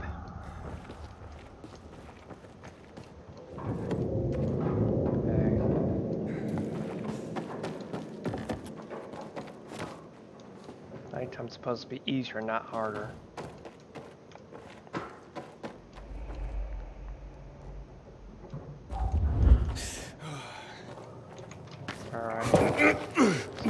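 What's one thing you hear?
Footsteps shuffle over a gritty, debris-strewn floor.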